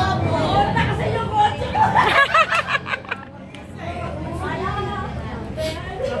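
Several women talk and laugh together close by.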